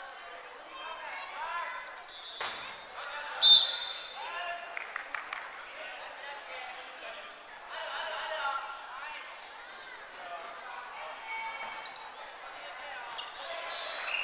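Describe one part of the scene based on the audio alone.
Women shout and call out to each other in a large echoing hall.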